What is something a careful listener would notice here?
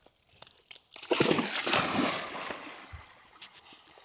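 A dog leaps into water with a loud splash.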